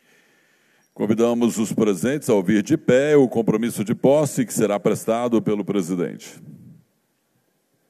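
A man speaks loudly over a loudspeaker in a large hall.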